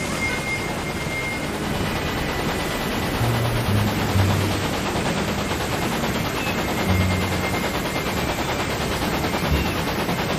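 A steam locomotive rumbles and hisses steadily as it rolls along the rails.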